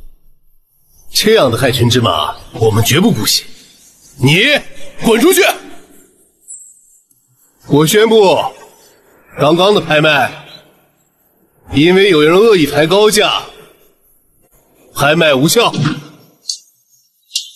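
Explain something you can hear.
A young man speaks loudly and firmly, close by.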